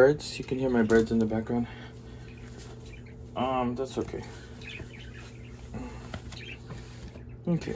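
Fabric rustles as a shirt is pulled on.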